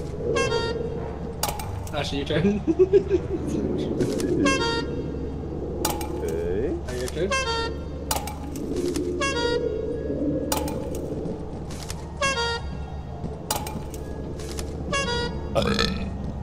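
A toy horn honks in short, bright blasts again and again.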